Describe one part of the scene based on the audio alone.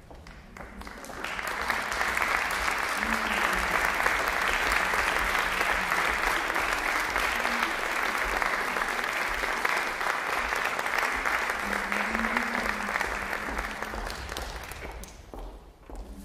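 An audience applauds warmly in a large echoing hall.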